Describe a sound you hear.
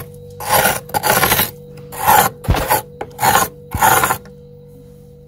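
A tool chips and scrapes at hard ice.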